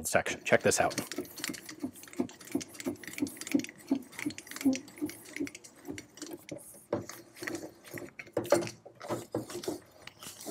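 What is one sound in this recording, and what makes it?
Metal parts clank and scrape as a man works a mechanism.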